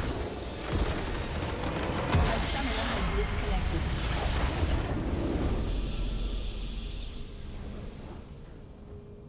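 A loud magical blast crackles and rumbles, then fades away.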